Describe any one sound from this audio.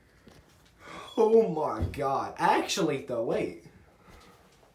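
A young man speaks loudly and animatedly close by.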